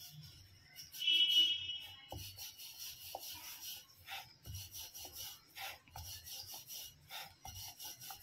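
A rolling pin rolls dough on a wooden board with soft knocks and rubbing.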